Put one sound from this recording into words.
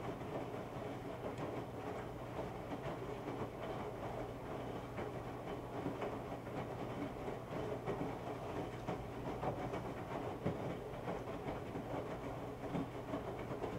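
Wet laundry thumps and sloshes inside a washing machine.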